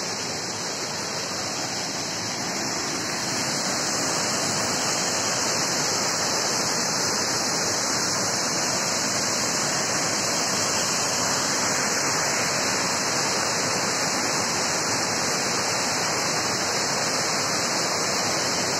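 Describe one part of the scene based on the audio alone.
A waterfall roars steadily nearby, growing louder as it comes closer.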